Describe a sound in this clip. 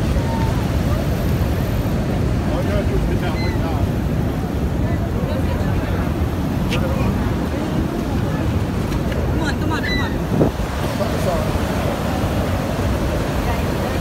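A waterfall roars steadily close by.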